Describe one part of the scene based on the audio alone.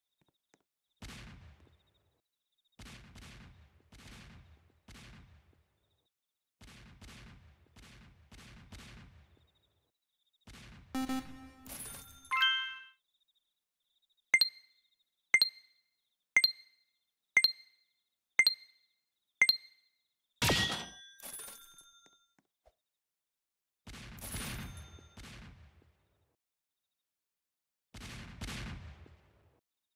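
Game guns fire in short bursts.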